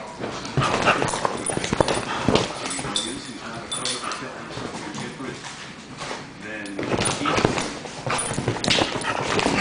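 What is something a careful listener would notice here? Dogs growl and snarl as they play-fight up close.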